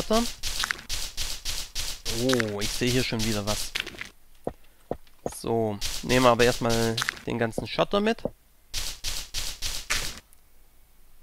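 A pickaxe chips at stone with quick repeated knocks.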